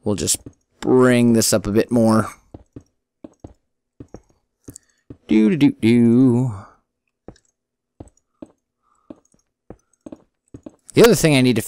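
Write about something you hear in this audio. Stone blocks are placed with soft, quick thuds.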